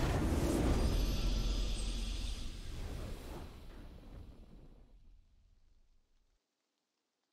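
A triumphant victory fanfare swells and fades away.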